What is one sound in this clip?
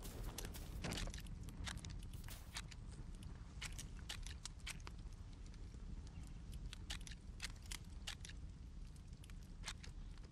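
Menu buttons click sharply, again and again.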